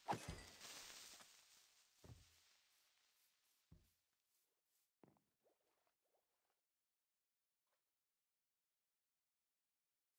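Water splashes and swirls.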